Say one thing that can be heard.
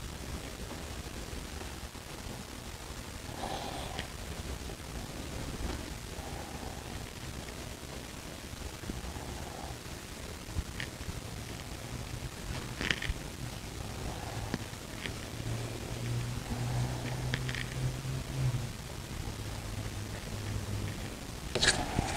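A brush swishes softly across a wet surface.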